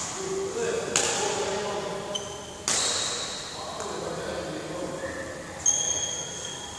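A racket strikes a shuttlecock with sharp pops in a large echoing hall.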